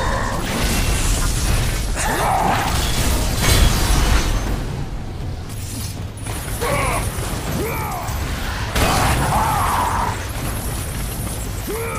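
A fiery whip swishes through the air.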